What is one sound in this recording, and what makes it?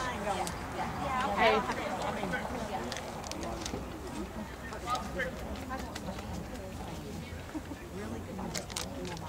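Players call out across a playing field in the distance.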